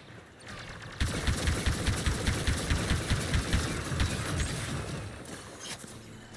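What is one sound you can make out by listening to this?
Blasters fire in rapid bursts.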